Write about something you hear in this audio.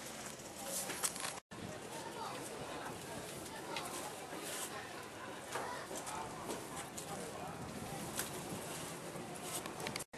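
Cardboard boxes scrape and thump as men pass them up.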